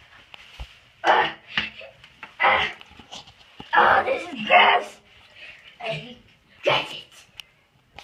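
Water splashes and sloshes in a toilet bowl.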